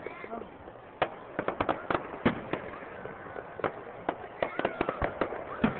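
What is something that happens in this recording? Fireworks burst and crackle with sharp bangs in quick succession.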